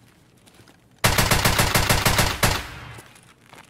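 A rifle fires a rapid burst of shots at close range.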